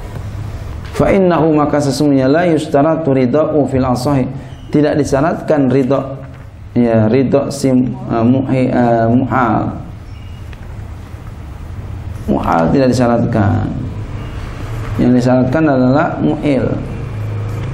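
A man speaks into a microphone in a slow, chanting voice, with pauses between phrases.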